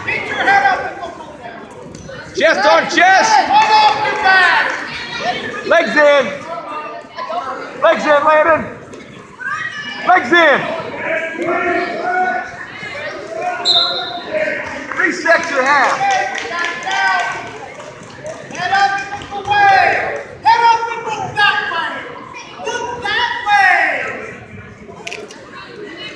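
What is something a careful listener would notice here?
Adult spectators, men and women, shout encouragement loudly in a large echoing hall.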